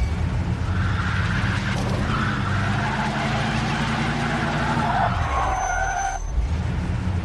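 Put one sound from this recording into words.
Car tyres screech and skid on the road.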